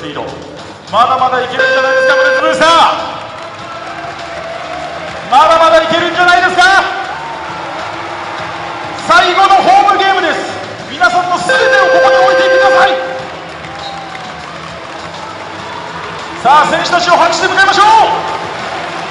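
A large crowd chants loudly in short bursts in a big echoing arena.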